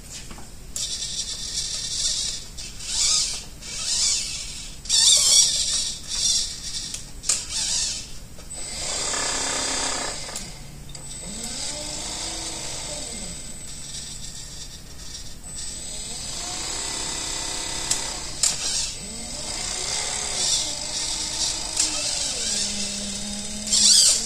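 An electric motor whirs in short bursts, its pitch rising and falling.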